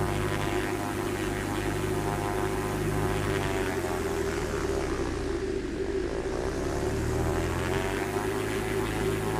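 A small propeller plane's engine drones steadily, its pitch dipping and then rising again.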